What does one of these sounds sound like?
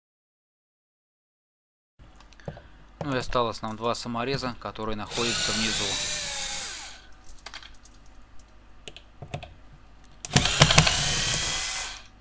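A screwdriver scrapes and clicks against a car door panel.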